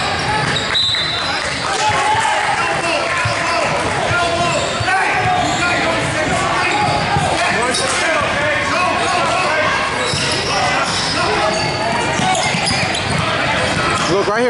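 A basketball bounces on a wooden court, echoing in a large hall.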